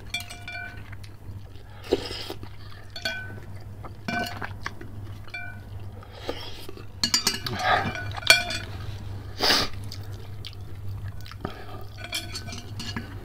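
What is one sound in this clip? A man chews food wetly, close up.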